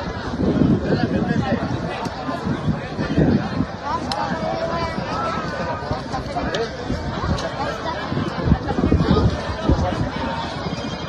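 Men talk and call out close by, outdoors.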